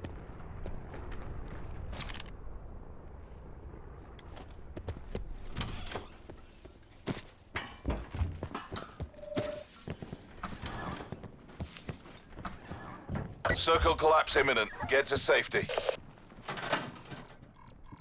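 Footsteps thud quickly on hard ground and stairs.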